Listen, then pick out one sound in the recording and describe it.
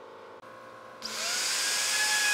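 A power router whirs loudly.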